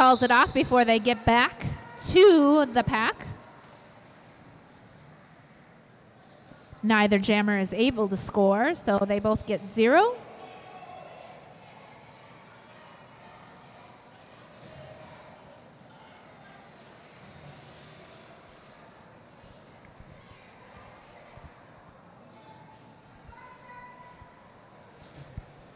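Roller skate wheels roll across a hard floor.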